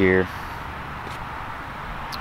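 Pruning shears snip a branch.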